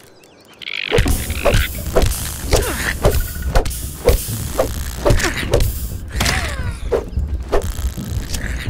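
A rock thuds repeatedly against a giant ant.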